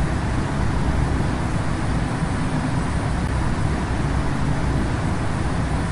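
Jet engines roar with a steady low rumble.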